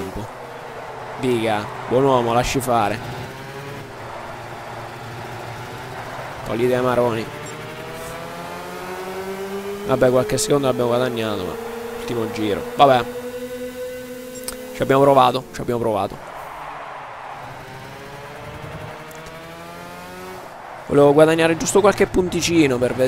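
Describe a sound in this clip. A kart engine drones and whines, its pitch rising and falling as it speeds up and slows down.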